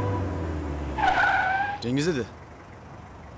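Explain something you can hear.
A young man speaks with surprise.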